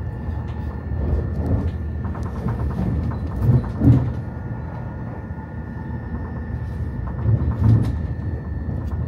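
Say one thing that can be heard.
Train wheels clatter and thump over rail joints.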